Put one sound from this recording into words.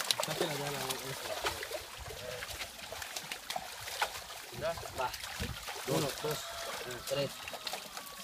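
Several men talk and call out to each other nearby.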